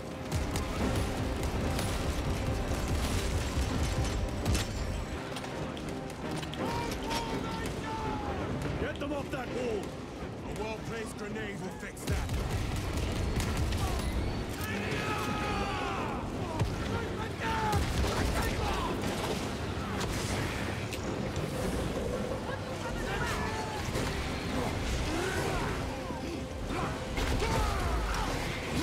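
Heavy gunfire rattles and booms.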